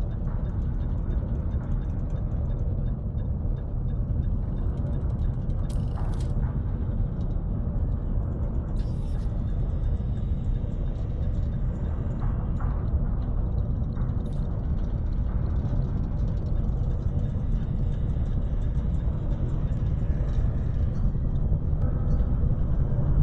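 A spacecraft's engines rumble low and steady.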